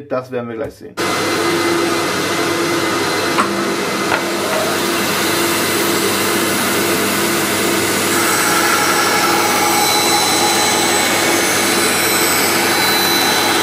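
A band saw runs with a steady, loud whir.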